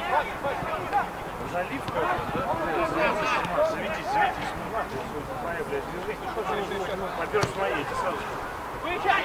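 Young players shout and call to each other outdoors.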